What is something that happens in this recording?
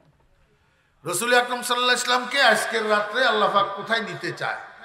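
An elderly man preaches loudly and with fervour into a microphone, heard through loudspeakers.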